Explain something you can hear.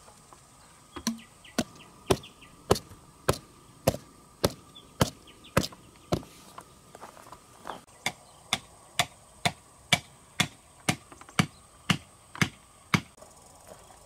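A wooden stake is knocked into the ground with steady, regular blows.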